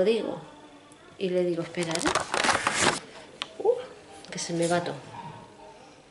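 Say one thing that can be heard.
A middle-aged woman speaks close to the microphone.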